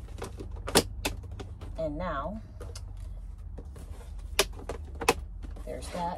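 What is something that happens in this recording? A plastic lid snaps onto a box.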